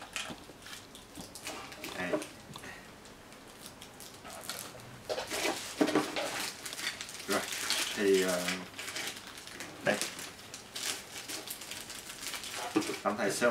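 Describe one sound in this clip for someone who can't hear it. Paper and plastic wrapping rustle and crinkle close by.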